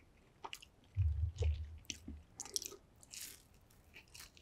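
A man crunches and chews crispy food close to a microphone.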